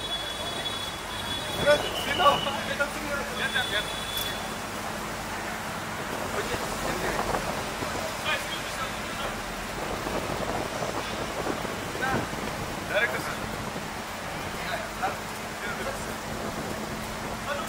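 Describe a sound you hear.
A crowd of men chatter nearby outdoors.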